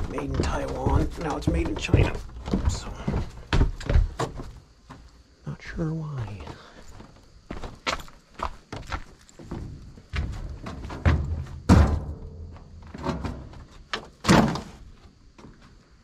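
A metal cart rattles as it is pushed over rough ground.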